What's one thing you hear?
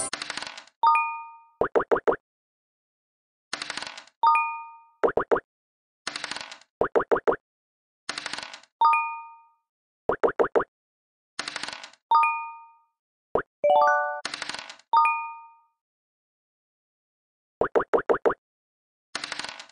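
Dice rattle and roll with a short clatter.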